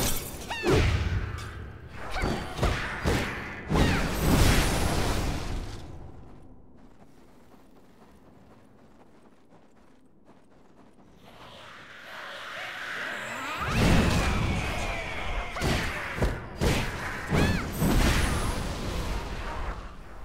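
Magic blasts burst and whoosh.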